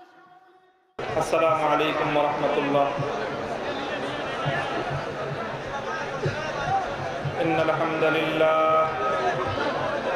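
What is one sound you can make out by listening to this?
A man speaks steadily into a microphone, heard through a loudspeaker.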